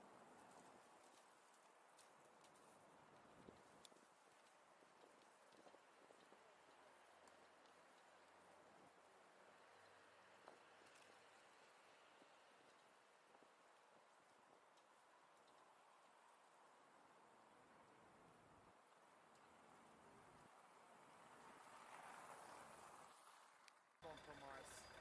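Bicycle tyres roll steadily over pavement.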